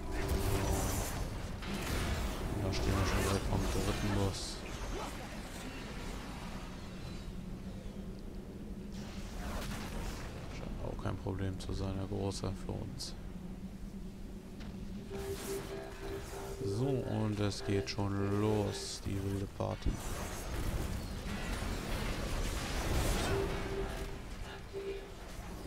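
Electric spells crackle and burst in a fight.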